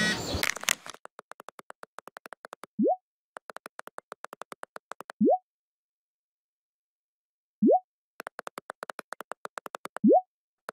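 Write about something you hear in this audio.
Rapid soft electronic ticking plays in bursts.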